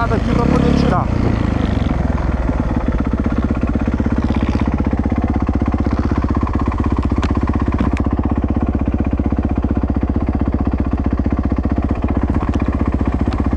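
A dirt bike engine idles with a steady, rapid putter.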